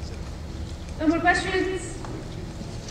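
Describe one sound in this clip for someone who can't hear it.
A woman speaks briefly through a loudspeaker in a large echoing hall.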